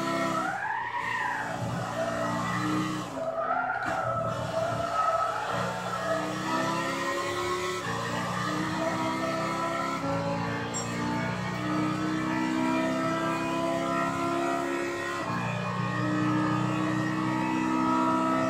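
A race car engine roars and revs up through the gears.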